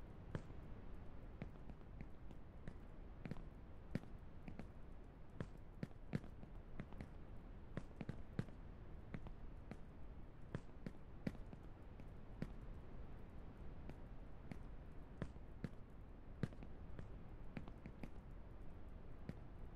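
Footsteps thud on metal car roofs.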